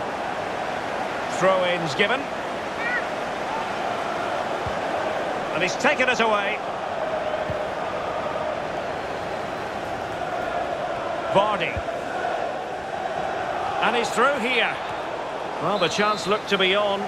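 A large stadium crowd murmurs and hums steadily.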